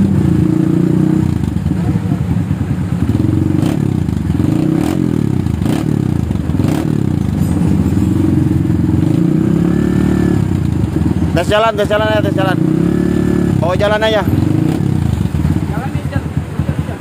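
A motorcycle engine idles with a deep, throbbing rumble.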